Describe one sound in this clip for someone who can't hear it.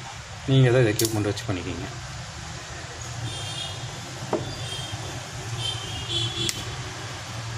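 Fingers handle small plastic phone parts with soft clicks and taps.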